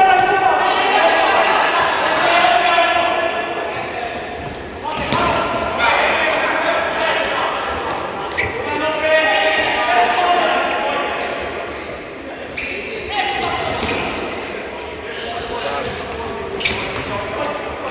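A futsal ball is kicked across a hard court in an indoor hall.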